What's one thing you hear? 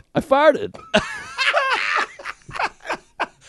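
A second man shouts excitedly into a microphone.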